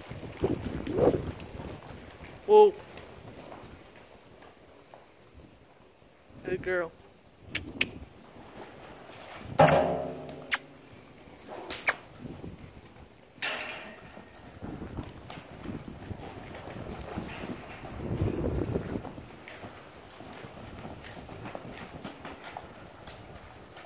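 Hooves thud softly on loose dirt.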